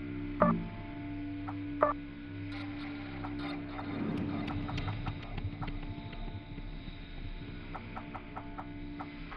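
Short electronic menu beeps chime now and then.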